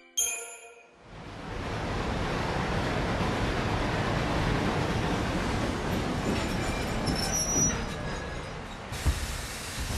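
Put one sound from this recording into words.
A train rumbles and hisses as it rolls in and slows to a stop.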